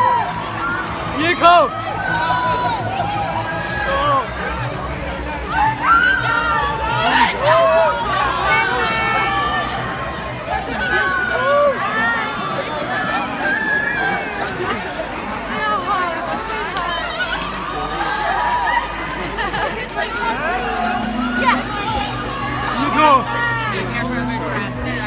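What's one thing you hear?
A large crowd of fans shouts and calls out excitedly close by.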